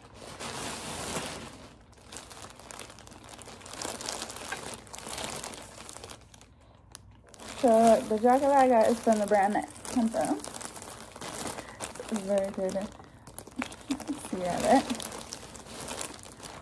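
Plastic packaging crinkles and rustles close by.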